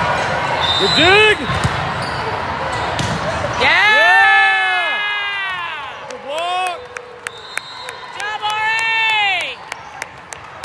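Sneakers squeak loudly on the court floor.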